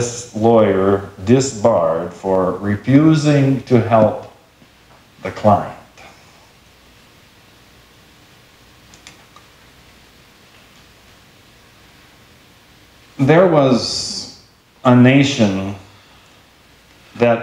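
A middle-aged man speaks with animation through a microphone in a reverberant room.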